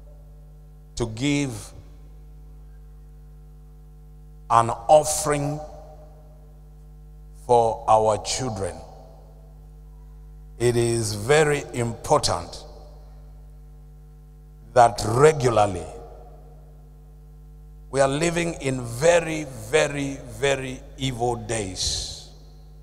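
A man preaches with animation into a microphone, in short bursts with pauses.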